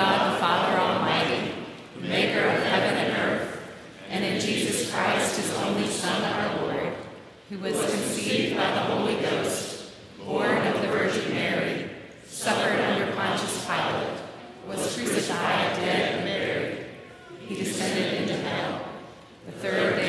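A woman leads the recitation through a microphone.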